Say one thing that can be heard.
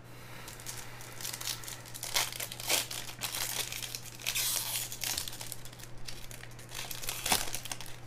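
Foil wrappers crinkle and tear as card packs are opened by hand.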